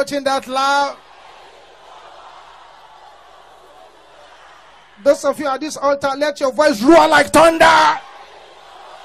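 A man preaches loudly and forcefully into a microphone.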